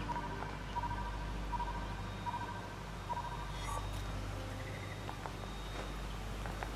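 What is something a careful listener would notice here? Hooves clop on stone as a large deer walks.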